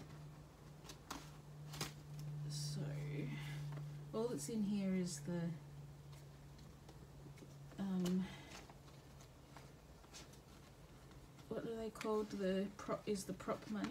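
Paper banknotes crinkle as they are folded and tucked away.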